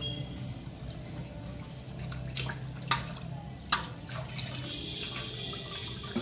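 Water splashes in a metal pot.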